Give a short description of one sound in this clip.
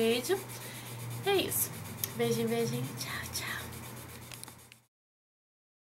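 A young woman talks cheerfully close to a microphone.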